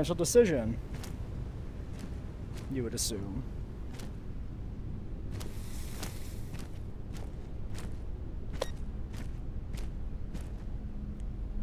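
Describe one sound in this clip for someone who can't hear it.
Footsteps crunch slowly on rough ground.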